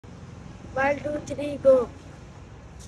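A boy speaks close by with animation.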